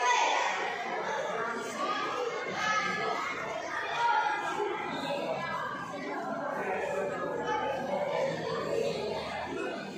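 A crowd of spectators chatters throughout a large echoing hall.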